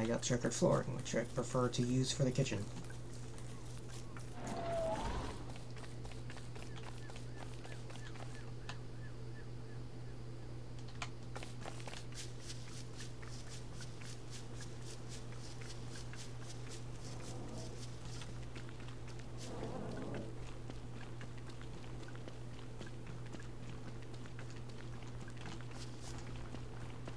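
Soft footsteps patter steadily on the ground.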